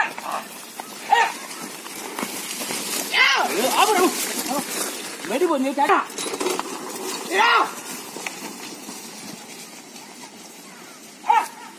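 Young men shout outdoors.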